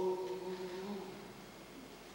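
A young performer sings through a microphone in a large hall.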